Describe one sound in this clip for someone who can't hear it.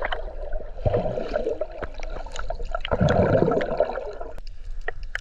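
Bubbles gurgle and burble underwater.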